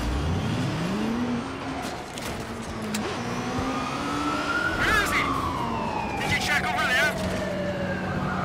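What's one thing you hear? A motorcycle engine hums and revs as it rides along a street.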